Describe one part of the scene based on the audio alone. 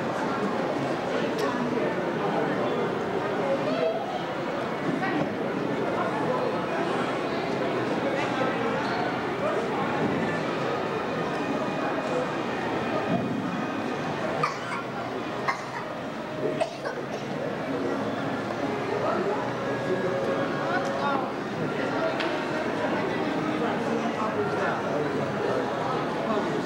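Many voices murmur and chatter in a large echoing hall.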